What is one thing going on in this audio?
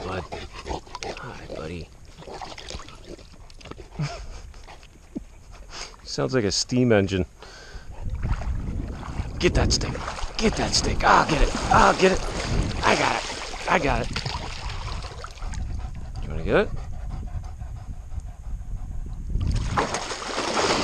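Water splashes as a dog swims close by.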